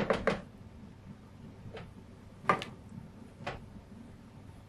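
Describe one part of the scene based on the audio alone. A wooden spoon knocks and scrapes against a metal pot.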